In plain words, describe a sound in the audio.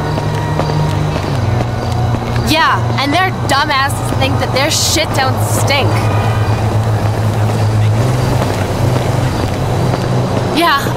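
High heels click on pavement at a steady walking pace.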